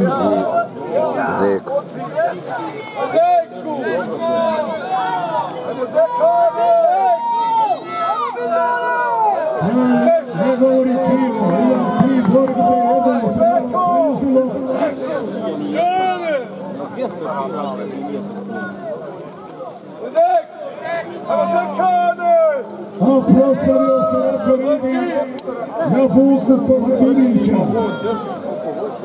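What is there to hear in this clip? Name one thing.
Several men talk and call out loudly outdoors.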